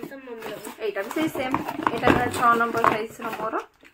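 Paper crinkles as it is unwrapped.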